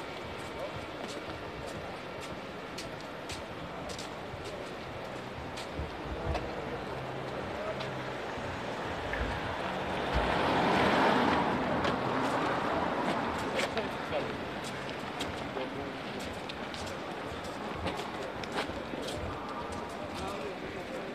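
Footsteps clatter on pavement outdoors.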